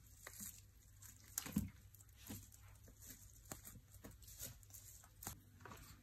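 Bare feet crunch dry plant sprigs.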